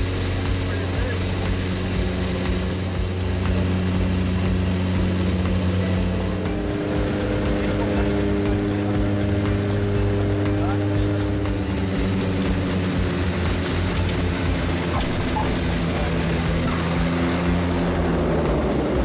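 Airplane engines drone steadily and loudly, with a shift in pitch partway through.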